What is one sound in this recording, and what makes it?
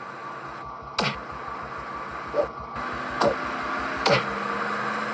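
Punches thud in a fight in a video game.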